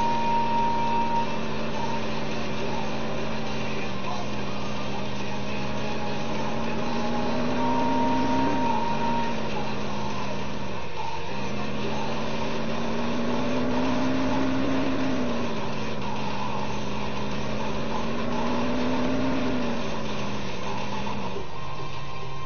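A car engine hums and revs up and down as a vehicle drives.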